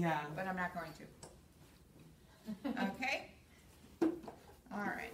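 A middle-aged woman speaks calmly and clearly nearby, explaining in short phrases.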